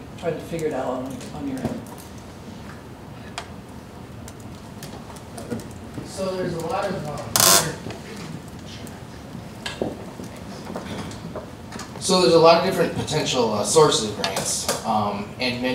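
A man speaks through a microphone and loudspeakers in a large echoing room.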